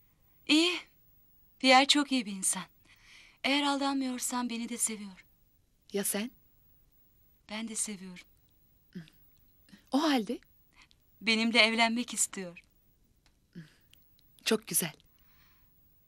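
A young woman speaks calmly and close by, with pauses.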